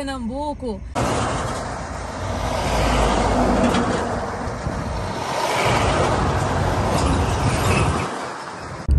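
A heavy truck roars past close by.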